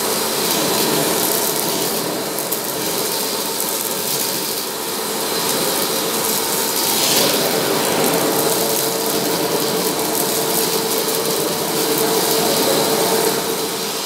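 A vacuum nozzle rustles and sucks across a shaggy rug.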